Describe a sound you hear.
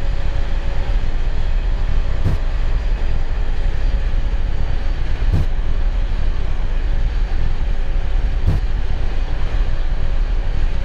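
Jet engines roar steadily as an airliner rolls down a runway.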